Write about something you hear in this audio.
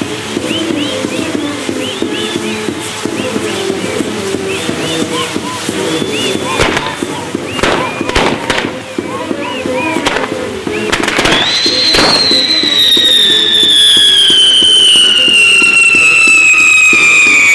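Fireworks crackle and hiss steadily.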